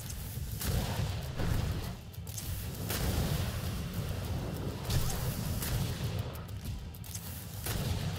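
Magic blasts crackle and roar in bursts.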